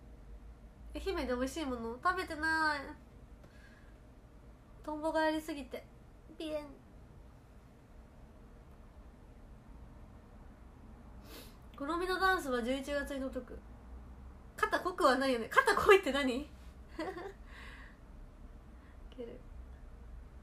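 A young woman talks close to a microphone in short bursts, with pauses.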